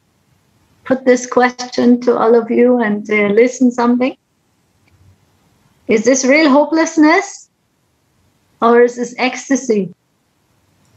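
A middle-aged woman speaks warmly and calmly over an online call, in short bursts with pauses.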